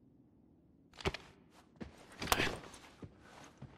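Something is picked up with a short rustle and click.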